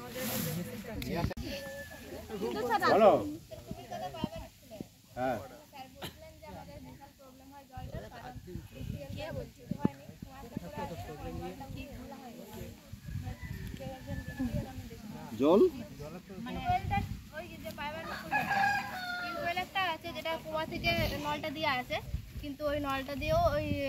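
Young women and men chatter nearby outdoors.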